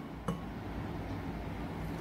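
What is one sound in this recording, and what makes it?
Milk pours into a glass jug.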